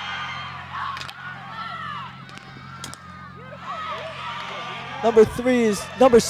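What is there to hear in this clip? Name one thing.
A hockey stick smacks a ball.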